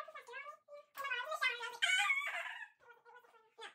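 A second young girl laughs loudly close by.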